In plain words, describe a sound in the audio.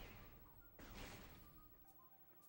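A game weapon fires a blast.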